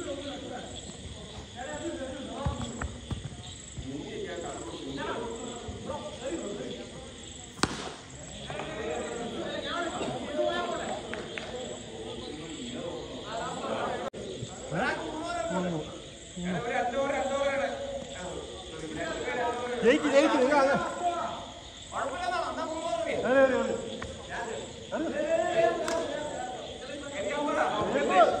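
Several men talk and call out to each other.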